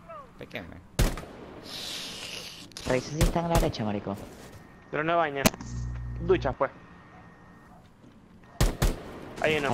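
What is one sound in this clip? A rifle fires single sharp shots.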